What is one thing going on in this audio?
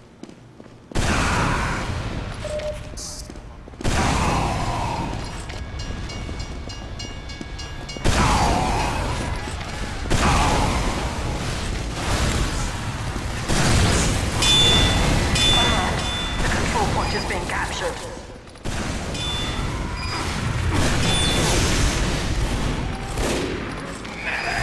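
A shotgun fires loud booming blasts again and again.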